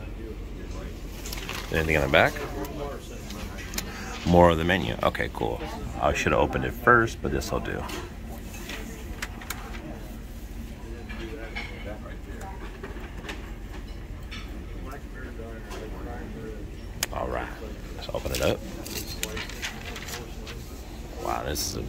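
Paper rustles softly under a hand.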